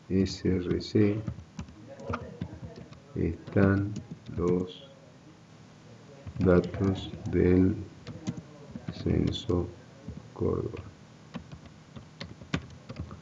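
Keys on a keyboard click as someone types.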